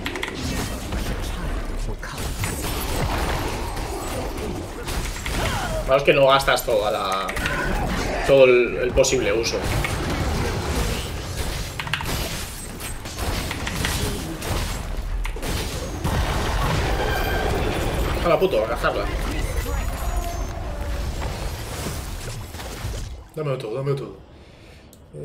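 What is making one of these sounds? A man talks into a microphone with animation, close by.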